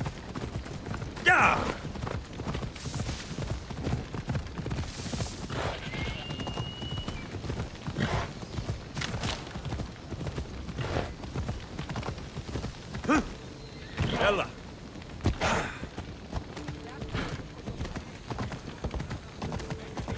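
A horse's hooves gallop steadily over the ground.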